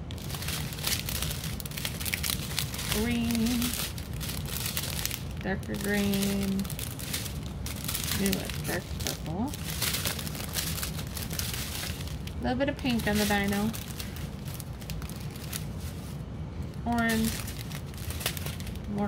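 Plastic bags of beads crinkle and rustle in hands.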